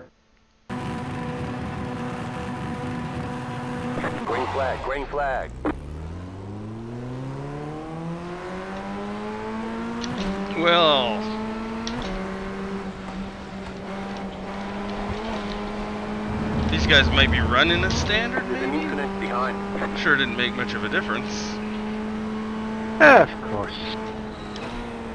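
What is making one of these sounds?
A racing car engine idles, then revs up hard and climbs steadily through the gears.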